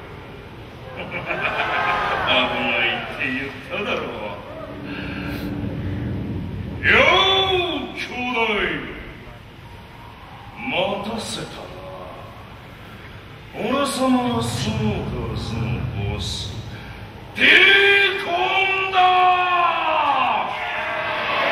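A man shouts through a megaphone, loud and echoing outdoors.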